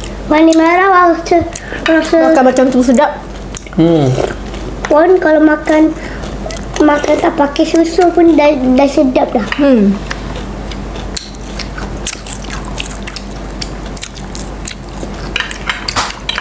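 People crunch and chew food close by.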